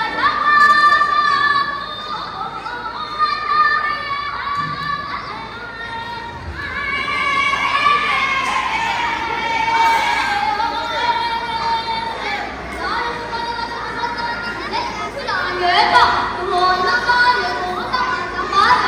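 A woman sings a melodic song through a loudspeaker.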